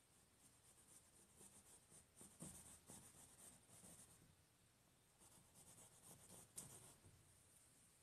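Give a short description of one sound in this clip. A painting knife scrapes softly across canvas.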